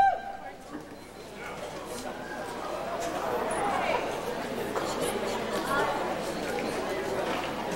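A concert band plays in a large echoing hall, swelling gradually.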